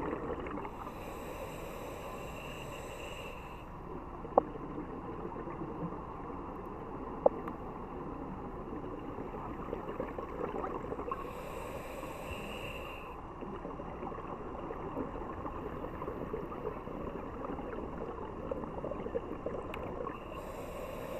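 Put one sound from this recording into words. Scuba breathing bubbles rush and gurgle close by in bursts, heard underwater.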